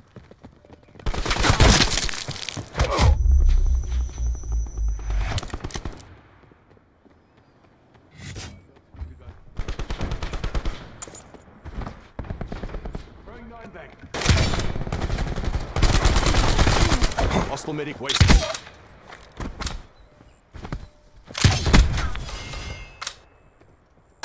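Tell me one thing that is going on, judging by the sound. Rapid gunfire bursts out in loud volleys.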